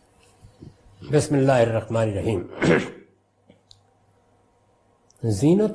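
An elderly man speaks calmly and closely into a microphone.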